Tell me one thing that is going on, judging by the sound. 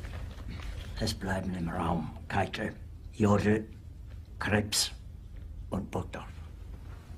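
An elderly man speaks in a low, weary voice close by.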